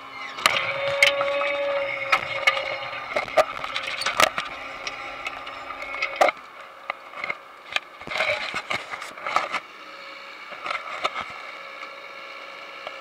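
A farm machine rattles and clanks with sharp metal knocks.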